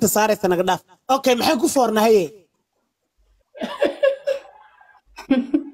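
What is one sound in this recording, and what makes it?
A young man laughs over an online call.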